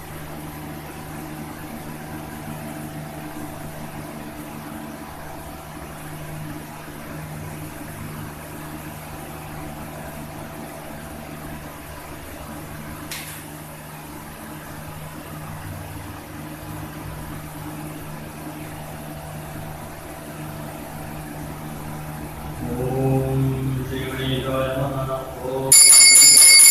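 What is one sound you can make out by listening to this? A man chants steadily in a low voice.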